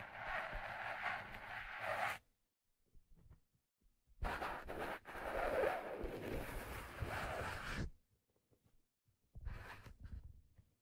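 Fingers rub and scratch along a stiff hat brim, very close to a microphone.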